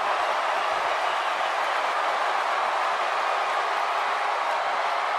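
A large crowd cheers loudly and steadily.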